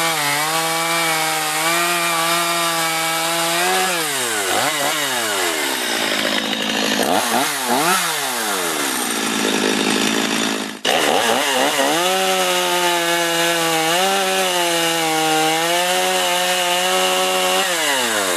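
A chainsaw engine roars loudly and revs up and down.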